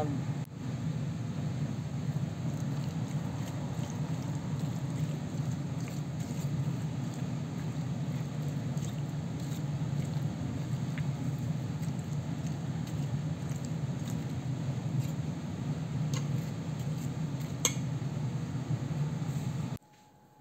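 A fork stirs through creamy fruit salad, clinking against a metal bowl.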